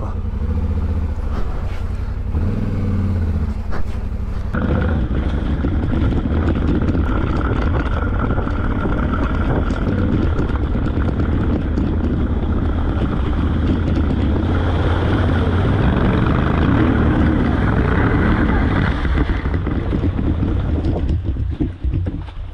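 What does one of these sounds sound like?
A motorcycle engine rumbles steadily as it rides along a rough track.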